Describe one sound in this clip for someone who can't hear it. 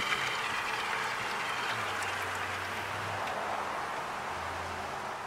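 A small electric pump runs with a steady whirring hiss.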